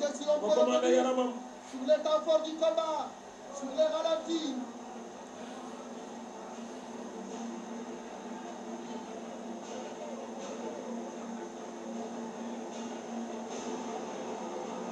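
A large crowd shouts and roars in a stadium.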